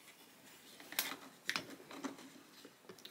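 A small metal clasp clicks and rattles under fingers.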